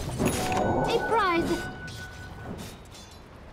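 Video game spell effects whoosh and chime.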